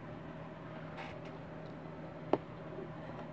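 A small plastic part clicks as a hand sets it down on a table.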